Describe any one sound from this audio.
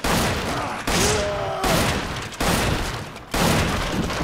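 A wooden door splinters and cracks.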